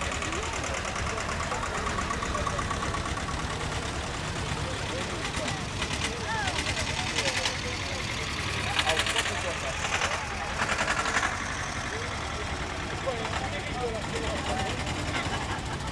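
A crowd of onlookers chatters outdoors.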